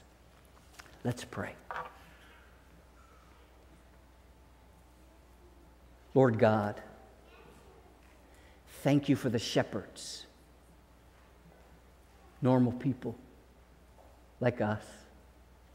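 A man speaks slowly and deliberately into a microphone in an echoing hall, with long pauses.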